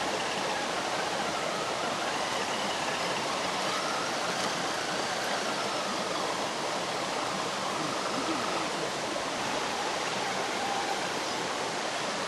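A stream gurgles and rushes over rocks.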